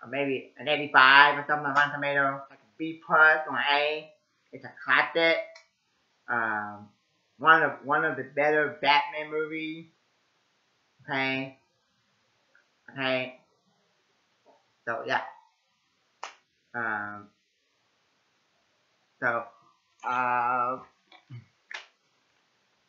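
A young man speaks close to a microphone, with pauses.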